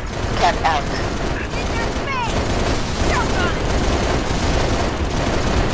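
A helicopter's rotors and engine drone steadily close by.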